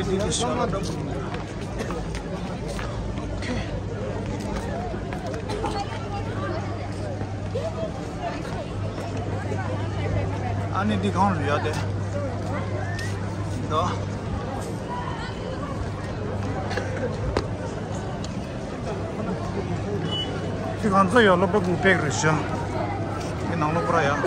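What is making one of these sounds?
A large crowd of children chatters outdoors.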